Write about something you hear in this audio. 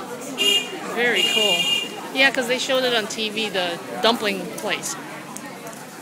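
A crowd of men and women talk loudly and shout close by.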